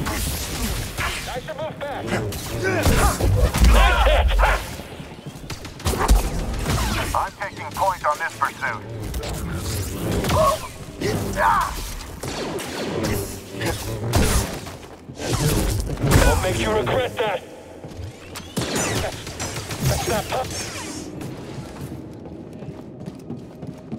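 A laser sword hums and swooshes as it swings.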